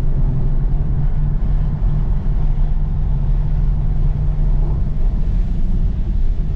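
A car engine drones loudly and steadily from inside the cabin at speed.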